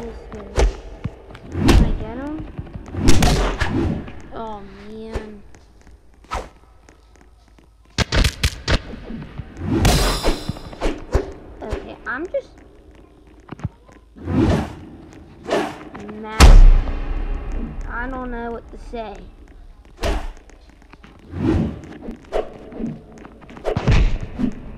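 Game punches land with sharp, heavy thuds.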